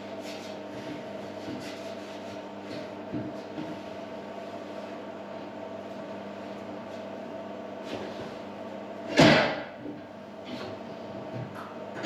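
Metal clinks and knocks as a man works on a pulley.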